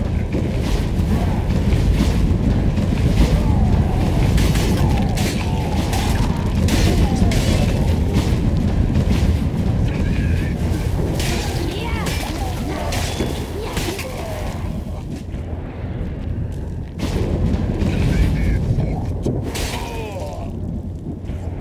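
Swords clash and slash in a fierce fight.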